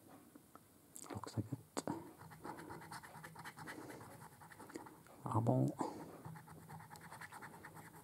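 A coin scrapes rapidly across a scratch card.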